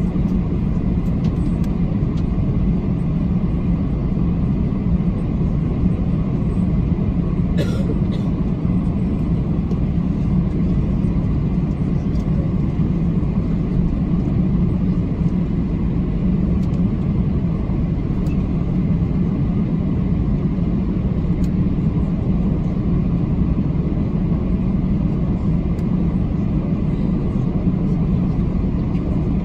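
A jet airliner's engines rumble steadily, heard from inside the cabin.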